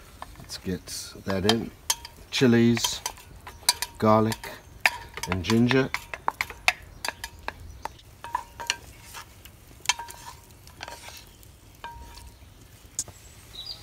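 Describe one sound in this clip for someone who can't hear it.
A wooden spoon knocks and scrapes in a metal pot.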